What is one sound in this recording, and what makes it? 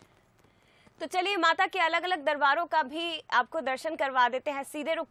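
A young woman speaks clearly and briskly into a microphone.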